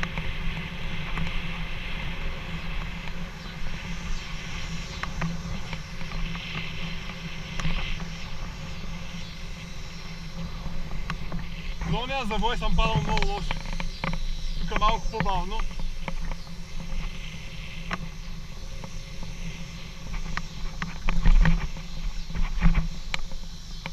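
Wind rumbles and buffets against a fast-moving microphone outdoors.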